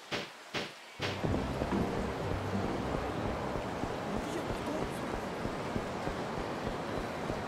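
A busy city street hums with the murmur of passers-by.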